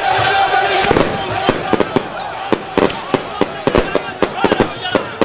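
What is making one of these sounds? Firecrackers bang in quick bursts.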